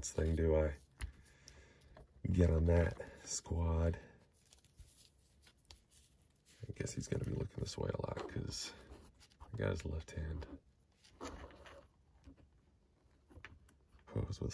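Small plastic parts click softly as a toy figure is handled.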